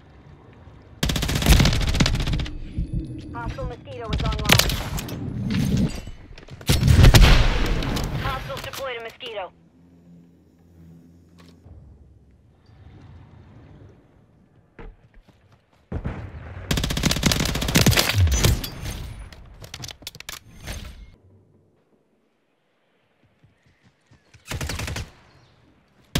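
Submachine gun fire in a video game rattles in rapid bursts.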